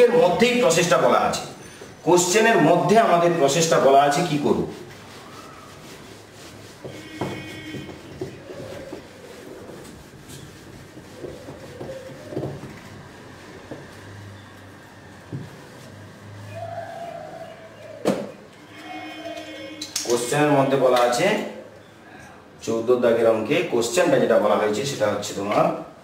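A man speaks aloud in an explaining tone, nearby in a room with a slight echo.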